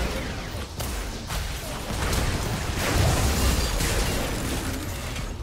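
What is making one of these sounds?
Video game combat effects burst, clash and crackle in quick succession.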